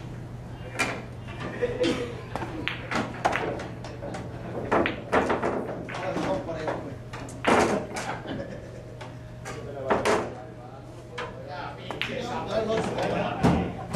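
Billiard balls clack against each other and roll across the table.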